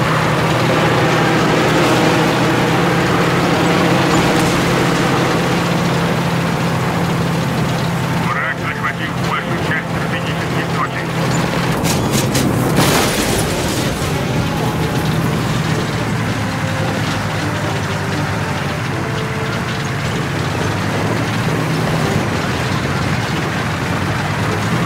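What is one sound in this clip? Tank tracks clank and rattle over the street.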